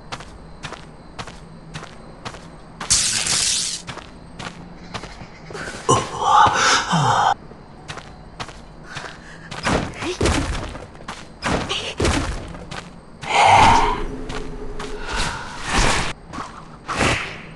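Footsteps tap quickly and evenly on hard ground.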